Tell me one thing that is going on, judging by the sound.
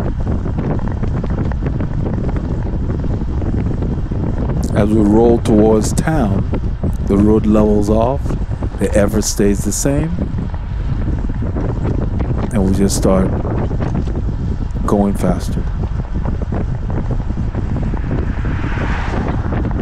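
Wind rushes loudly past a cyclist riding fast outdoors.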